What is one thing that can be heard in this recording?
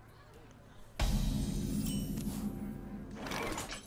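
A card game's fanfare sounds to announce a new turn.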